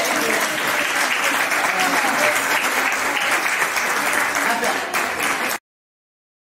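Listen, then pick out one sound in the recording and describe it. Hands clap in a sharp, steady rhythm.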